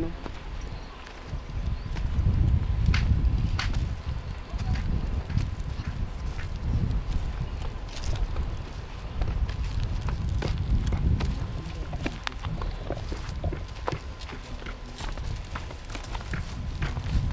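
Bare feet tread on dry ground.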